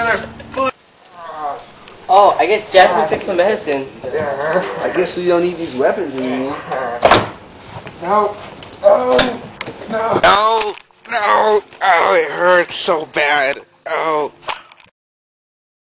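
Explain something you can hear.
Young men talk and laugh loudly close by.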